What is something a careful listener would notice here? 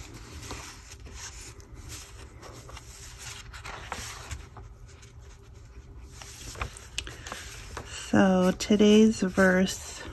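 Paper pages rustle and flip as they are turned.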